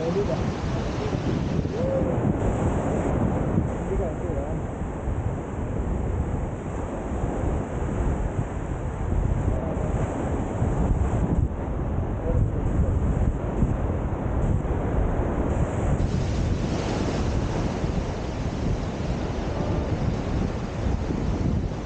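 Waves wash gently onto the shore.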